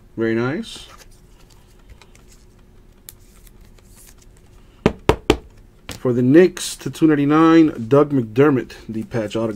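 Trading cards rustle and click as they are handled.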